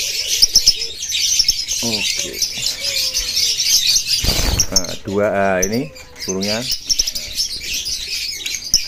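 Small parrots chirp and chatter rapidly and shrilly.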